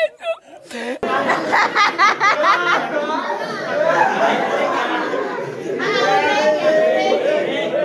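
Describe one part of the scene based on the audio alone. A group of young men cheer and laugh.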